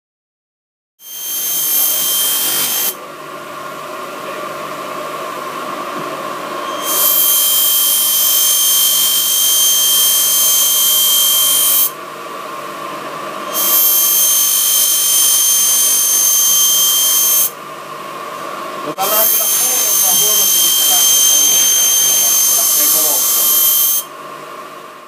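A knife blade grinds shrilly against a spinning wheel in repeated strokes.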